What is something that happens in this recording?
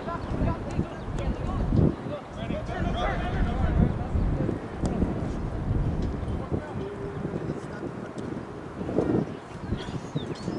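Young players shout to each other from across an open field.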